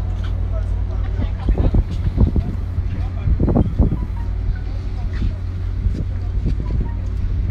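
Wind blows outdoors across the microphone.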